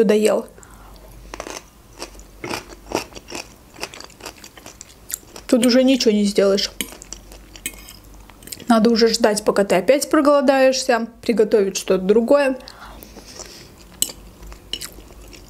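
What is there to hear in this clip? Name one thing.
A young woman chews food close to a microphone with moist smacking sounds.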